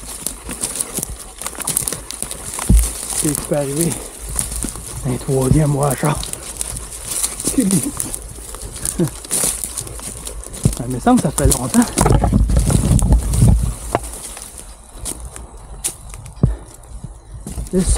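Dry twigs and brush snap and crackle underfoot.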